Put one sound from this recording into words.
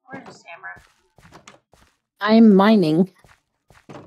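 A wooden door swings open with a knock.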